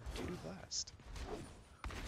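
Gunshots pop in quick bursts.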